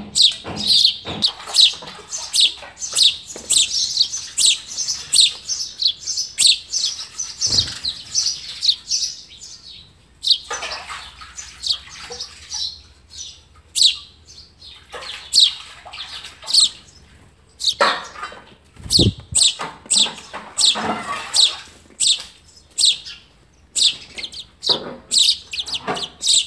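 Young birds chirp rapidly and shrilly close by.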